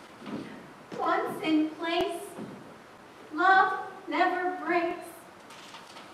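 A young woman speaks loudly across an echoing hall.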